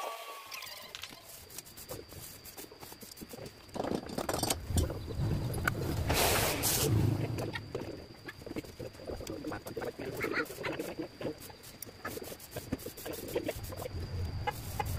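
A knife scrapes and shaves strips of bamboo.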